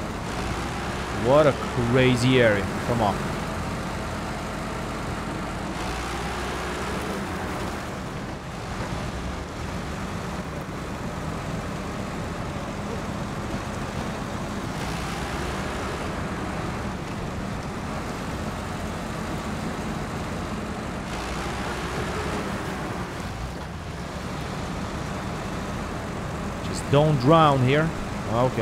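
A heavy truck engine rumbles steadily as the truck churns through mud.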